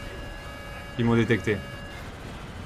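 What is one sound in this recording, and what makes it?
A heavy metal clang rings out.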